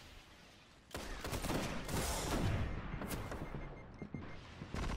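A loud blast bursts and roars.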